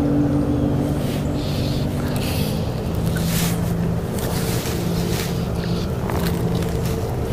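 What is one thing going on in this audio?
A fishing line swishes through the air in quick casts.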